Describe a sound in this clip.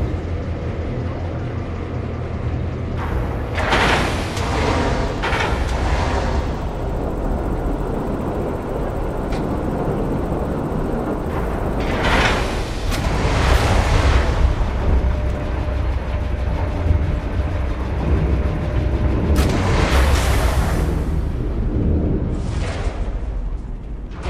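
A spacecraft's engines hum low and steadily.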